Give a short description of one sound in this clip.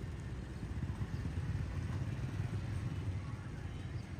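A motorbike passes close by.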